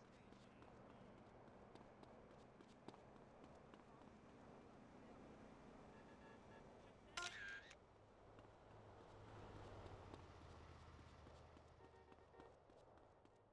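Footsteps run quickly over hard pavement.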